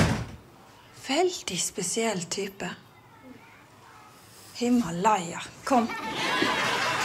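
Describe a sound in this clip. A woman speaks firmly up close.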